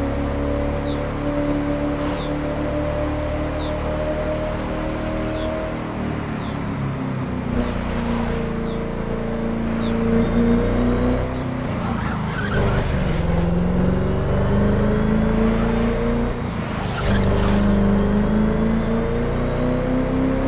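A sports car engine roars at high speed, its pitch rising and falling as it shifts gears.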